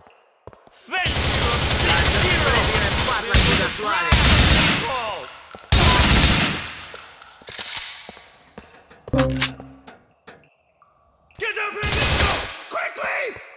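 An assault rifle fires rapid bursts with loud echoing cracks.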